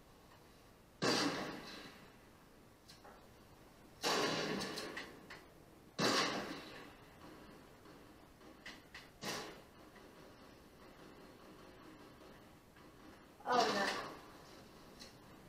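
Loud rifle shots boom one at a time through a television speaker, each trailing off in a short echo.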